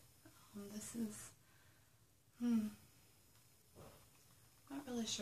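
A young woman speaks calmly and close by, in short phrases.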